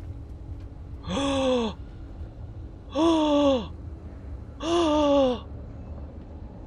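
A young woman speaks through a microphone in short, drawn-out calls.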